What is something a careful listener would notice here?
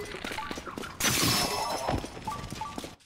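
A wooden bow shatters with a sharp crack.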